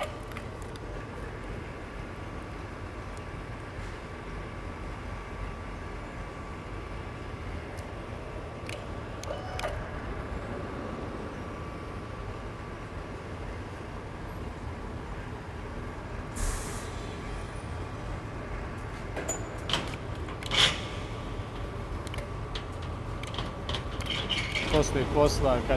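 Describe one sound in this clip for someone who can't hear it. A vacuum lifter motor hums steadily in a large echoing hall.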